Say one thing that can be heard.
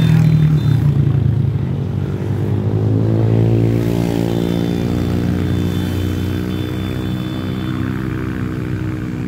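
A motor scooter engine hums nearby as it rides past.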